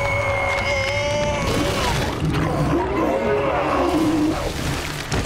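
A cartoon bear yells in alarm.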